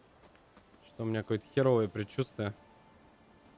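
A man speaks close to a microphone with animation.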